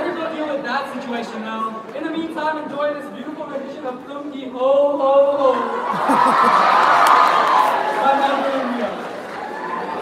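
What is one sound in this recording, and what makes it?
A woman sings through loudspeakers in a large echoing hall.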